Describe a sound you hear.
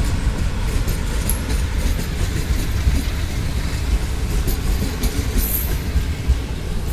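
A passenger train rumbles slowly along the tracks close by.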